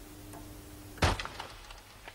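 A door clunks.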